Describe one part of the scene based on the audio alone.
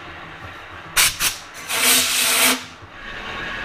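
Compressed air hisses in short bursts.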